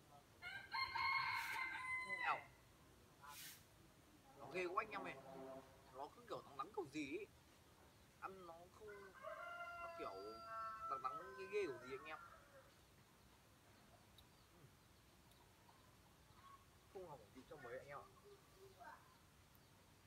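A young man talks calmly outdoors, close by.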